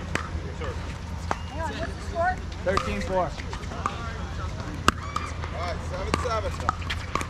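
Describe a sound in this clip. Paddles strike a plastic ball with sharp hollow pops.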